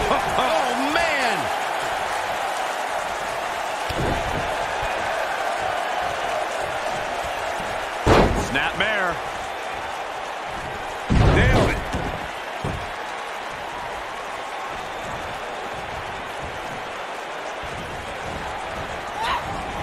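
A crowd murmurs and cheers steadily in a large arena.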